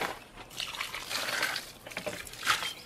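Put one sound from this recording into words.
Water pours from a pot onto leaves.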